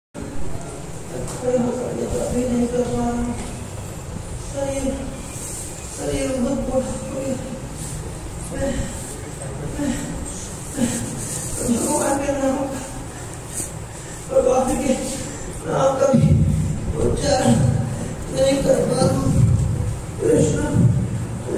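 A man speaks dramatically through a handheld microphone in an echoing hall.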